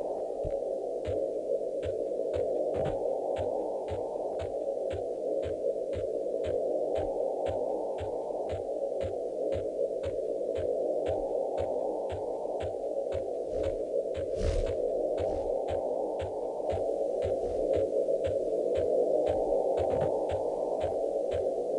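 Footsteps run steadily over grass.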